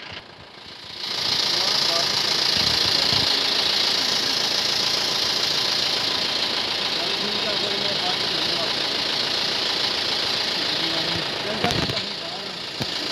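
Vehicle engines rumble steadily close by.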